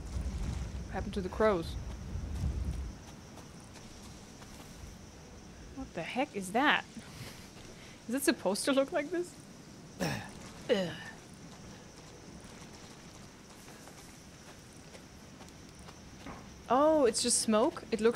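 A young woman talks calmly and close into a microphone.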